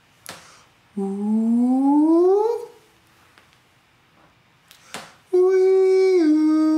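A young man sings loud, sustained notes up close, sliding upward.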